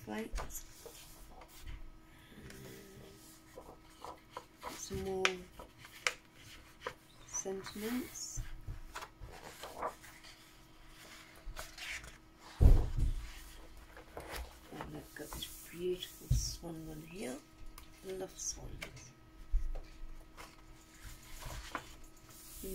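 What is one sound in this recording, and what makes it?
Sheets of paper rustle and slide against each other.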